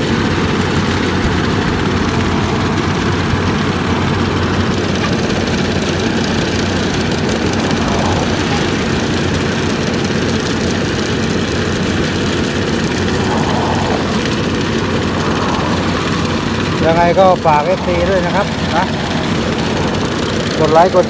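A large diesel engine rumbles steadily close by.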